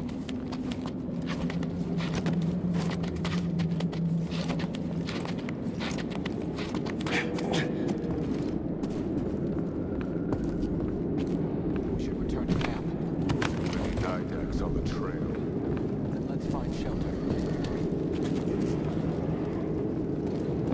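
A low wind rumbles steadily outdoors.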